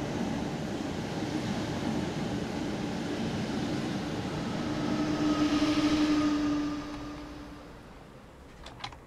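A train rumbles past close by and fades away.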